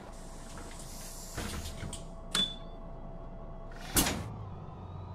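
Bus doors hiss and thump shut.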